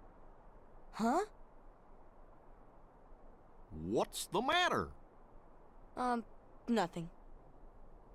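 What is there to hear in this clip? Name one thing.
A young boy's voice calls out in short, lively bursts.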